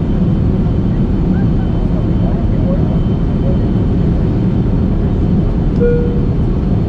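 A jet engine roars steadily in flight, heard as a deep, constant rumble from inside the cabin.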